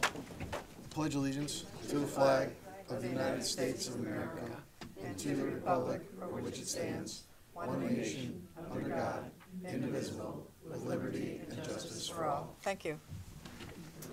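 A group of men and women recite together in unison.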